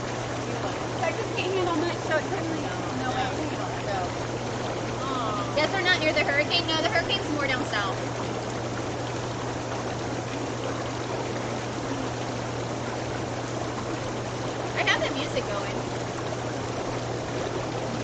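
Water bubbles and churns steadily in a hot tub.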